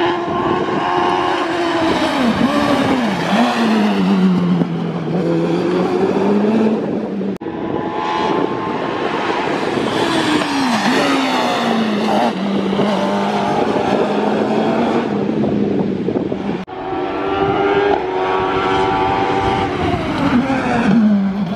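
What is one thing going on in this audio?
A racing car engine roars loudly, revving high and dropping as it changes gear.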